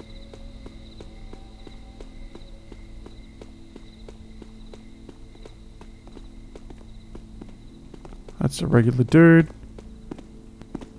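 Footsteps walk steadily on stone cobbles.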